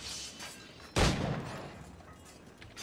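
A pistol shot bangs loudly.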